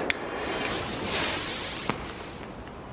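A firework rocket whooshes low past with a hiss.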